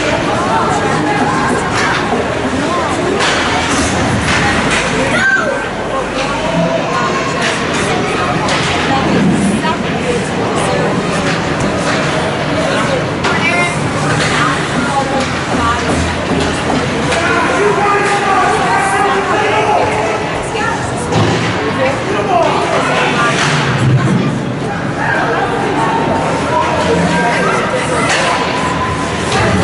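Skates scrape and glide on ice in a large echoing rink.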